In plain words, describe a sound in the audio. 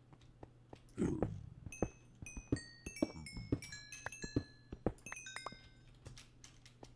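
Blocks crack and crumble as a pickaxe mines them.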